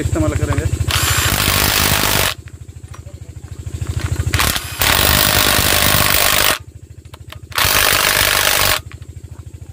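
A cordless drill whirs in short, loud bursts.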